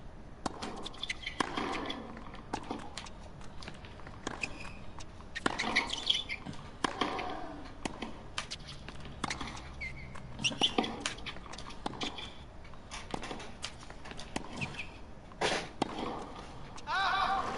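Tennis balls are struck with sharp pops of the racket, back and forth.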